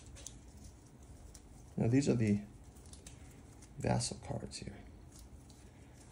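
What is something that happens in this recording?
Playing cards rustle and flick in a hand.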